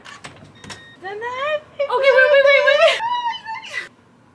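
A young woman cries out excitedly close by.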